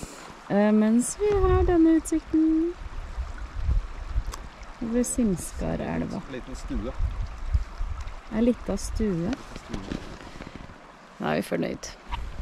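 A shallow river flows over stones.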